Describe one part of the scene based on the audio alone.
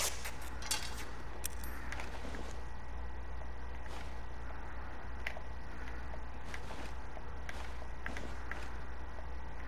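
Short soft clicks tick now and then as a menu selection moves.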